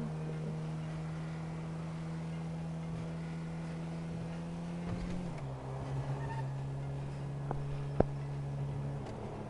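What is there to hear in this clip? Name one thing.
A car engine hums steadily and drops in pitch partway through.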